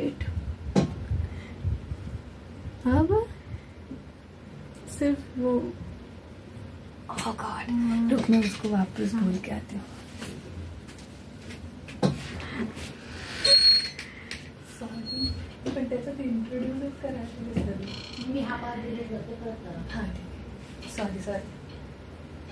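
A young woman laughs and talks close to a microphone.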